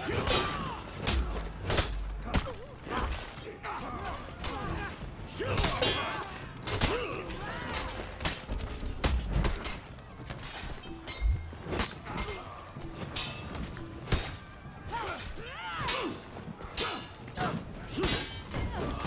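Swords clash and clang in a melee battle.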